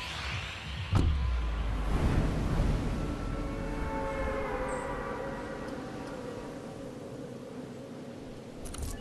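Wind rushes loudly past a figure falling through the air, then slowly fades.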